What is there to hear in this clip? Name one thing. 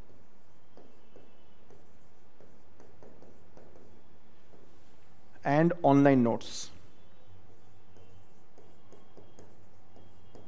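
A marker taps and squeaks faintly on a board.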